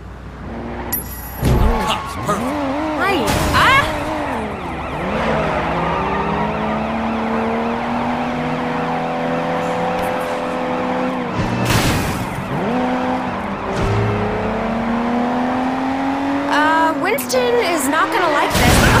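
A car engine revs hard and roars as the car speeds away.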